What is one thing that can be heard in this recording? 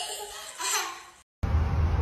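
A small child laughs loudly nearby.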